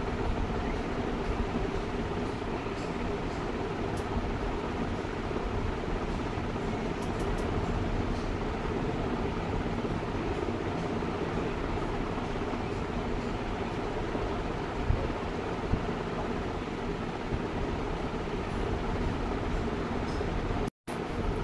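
Oil sizzles steadily in a pan.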